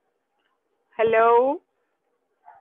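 A woman speaks a short phrase over an online call.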